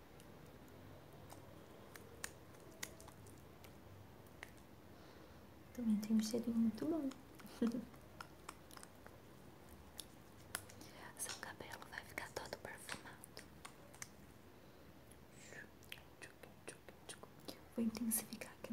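Wet hands rub and squish together close to a microphone.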